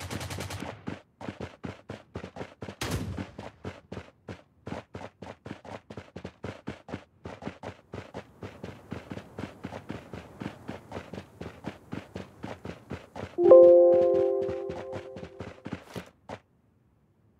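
Footsteps thud quickly through grass as a game character runs.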